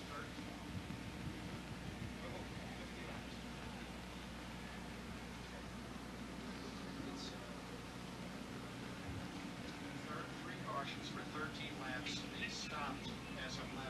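A large crowd murmurs and calls out in the distance, outdoors.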